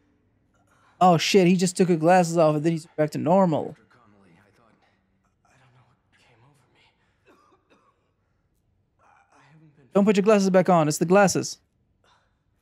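A young man speaks hesitantly and apologetically, close by.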